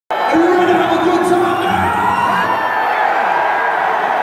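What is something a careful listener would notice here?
A man screams loudly into a microphone through loudspeakers.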